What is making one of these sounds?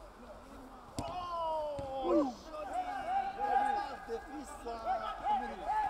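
Young male players shout across the pitch.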